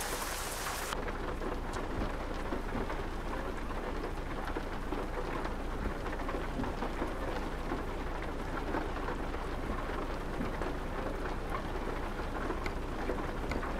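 Rain patters on a truck's windshield, heard muffled from inside the cab.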